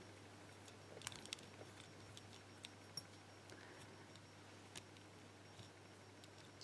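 A metal pick scrapes and clicks softly inside a small padlock.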